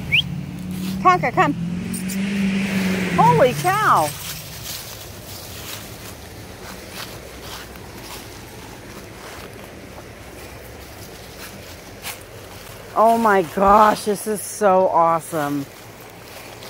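A dog yips and howls nearby.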